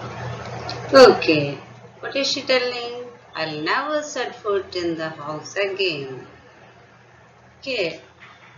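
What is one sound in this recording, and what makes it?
A woman speaks calmly and clearly into a microphone, explaining.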